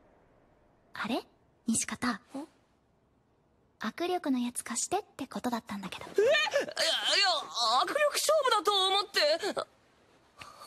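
A young boy speaks in surprise.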